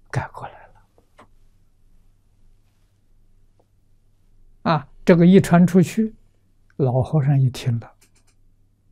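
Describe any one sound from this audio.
An elderly man speaks calmly and warmly into a close microphone, in short phrases.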